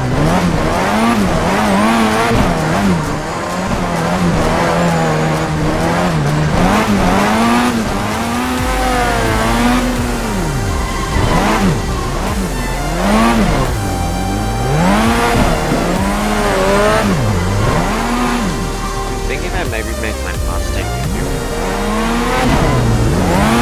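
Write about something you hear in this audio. Tyres squeal as a car drifts.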